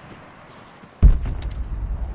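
An arrow thuds heavily into a wooden post.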